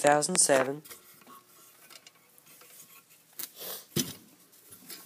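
A blade scrapes against a hard surface.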